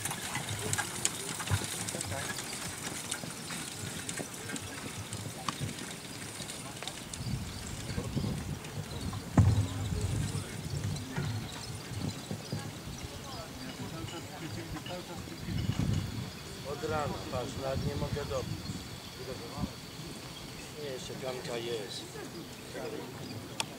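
A horse's hooves thud softly on grass at a trot.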